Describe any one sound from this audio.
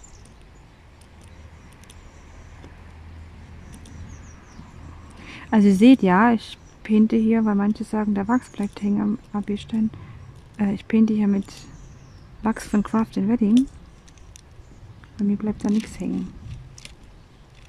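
A pen tool taps with soft clicks.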